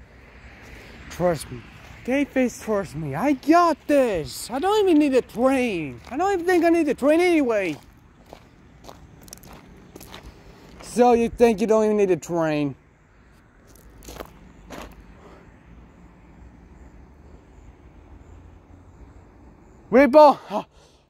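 Footsteps scuff on a rough pavement.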